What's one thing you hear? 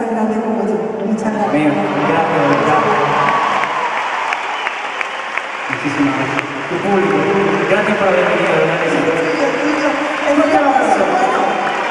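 A large crowd cheers and screams in an echoing arena.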